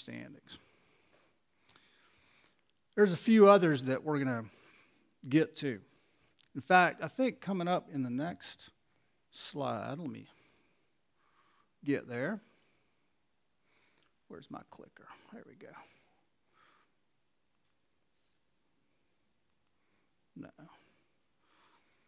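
A middle-aged man speaks calmly into a headset microphone, with pauses.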